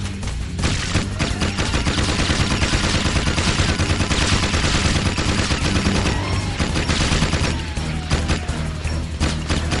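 Energy blasts explode and crackle.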